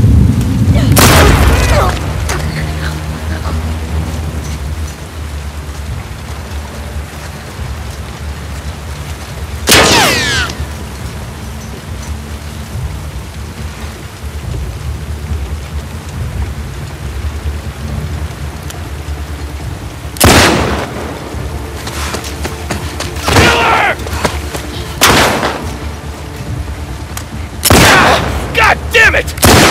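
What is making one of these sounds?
Gunshots ring out loudly with a sharp echo.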